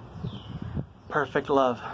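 A young man speaks loudly close by.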